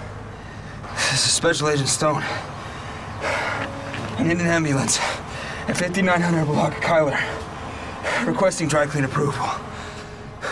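A young man speaks urgently and distressed into a phone, close by.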